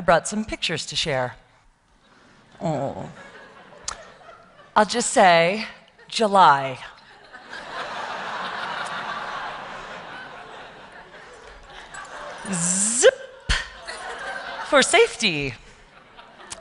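A woman speaks with animation through a microphone in a large hall.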